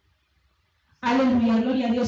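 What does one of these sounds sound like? A woman sings loudly into a microphone.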